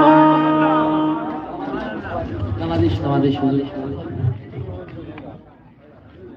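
A harmonium plays sustained chords.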